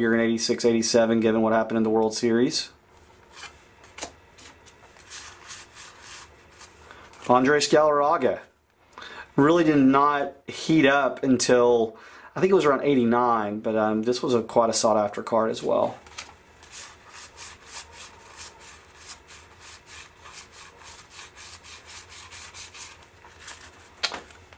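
Stiff trading cards slide and click against one another as they are flipped through.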